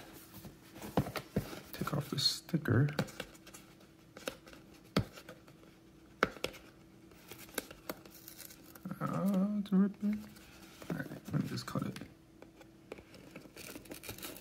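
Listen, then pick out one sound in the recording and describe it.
A blade slits the plastic shrink wrap on a cardboard box.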